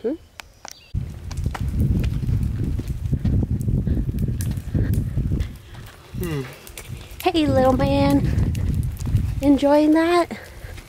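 A stroller's wheels roll over pavement.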